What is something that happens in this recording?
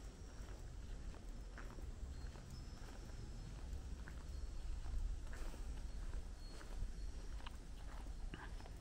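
Footsteps tread slowly on an asphalt road.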